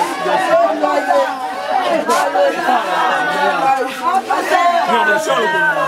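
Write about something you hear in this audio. A young man laughs and talks loudly.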